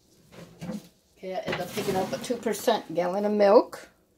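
A plastic jug is set down on a counter with a soft thud.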